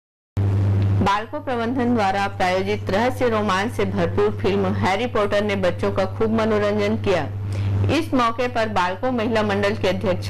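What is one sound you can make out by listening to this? A woman talks cheerfully nearby.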